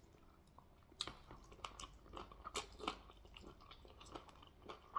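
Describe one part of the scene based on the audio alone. A man chews noisily.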